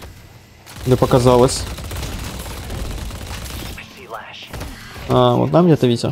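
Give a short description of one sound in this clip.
Gunshots crack rapidly in a video game.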